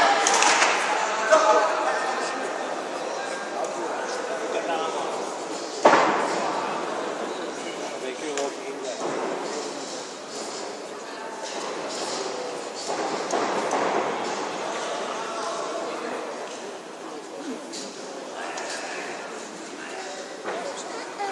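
A crowd chatters and calls out.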